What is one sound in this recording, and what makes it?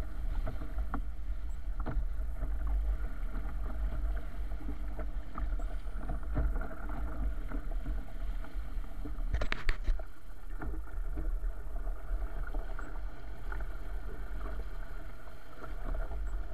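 Water splashes and rushes against the bow of a small boat.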